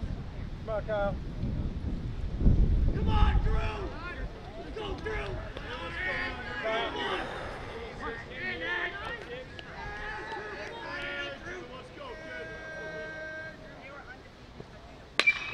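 Young men shout and chatter from the sidelines outdoors.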